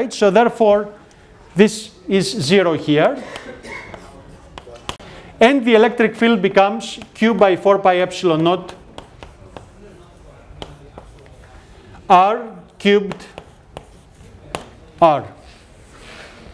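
A middle-aged man lectures calmly in a room with a slight echo.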